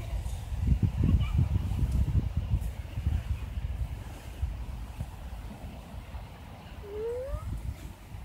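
Sand shifts and scrapes under a young girl's hands and feet.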